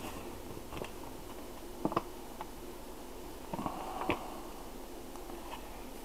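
A paper bag crinkles as a hand handles it.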